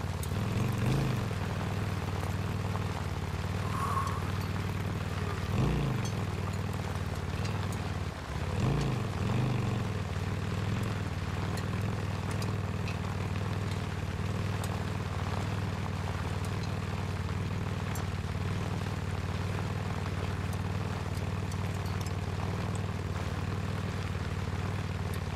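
A motorcycle engine rumbles steadily and revs up now and then.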